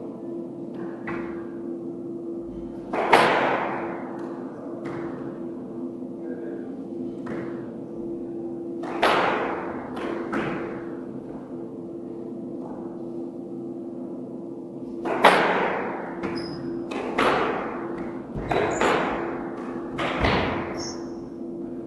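A squash ball smacks hard against the walls with a ringing echo in a large hard-walled court.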